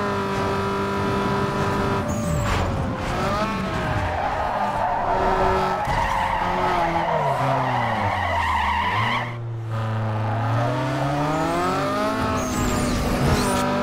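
A car engine roars and revs up and down.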